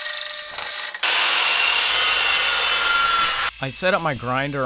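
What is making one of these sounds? A metal chop saw screams as it cuts through steel.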